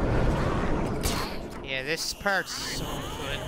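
A grappling line whips out and zips taut.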